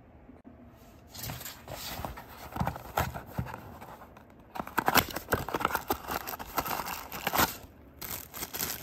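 A cardboard box scrapes and rustles in someone's hands.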